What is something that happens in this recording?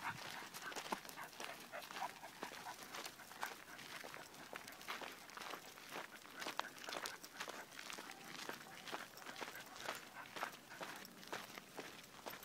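Footsteps and paws crunch on loose gravel.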